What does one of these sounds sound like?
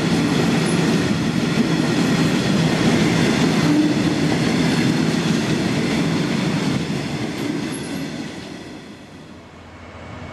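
A freight train rumbles past close by and fades away.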